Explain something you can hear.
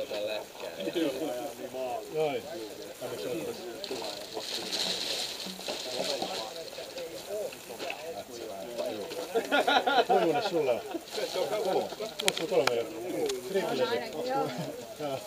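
Several men talk over one another nearby outdoors.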